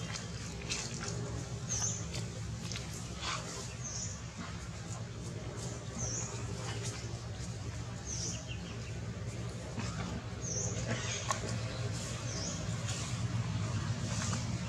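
Dry leaves rustle and crackle as monkeys move over the ground.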